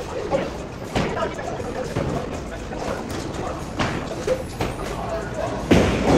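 Bowling balls roll down lanes and knock over pins in a large echoing hall.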